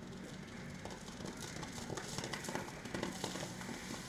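A horse gallops through wet mud with quick, splashing hoofbeats.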